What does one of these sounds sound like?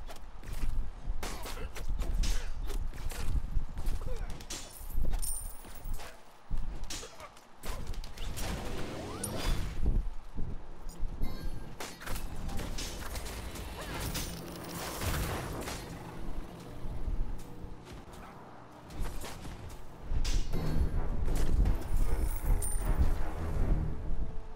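Game characters fire magic blasts and spells with sharp bursts and whooshes.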